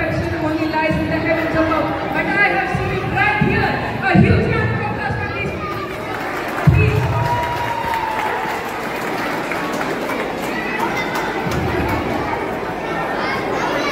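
A crowd of people chatters in the audience.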